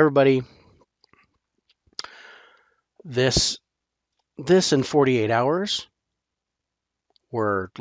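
A middle-aged man talks with animation into a close microphone, in short bursts.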